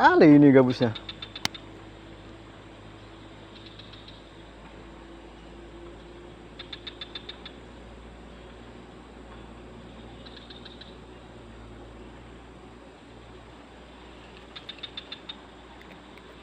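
A fishing reel clicks in short bursts as its handle turns.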